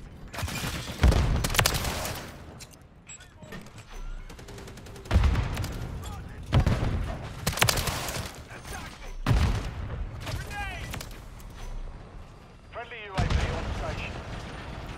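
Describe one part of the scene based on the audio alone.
Gunshots ring out in loud, sharp bursts.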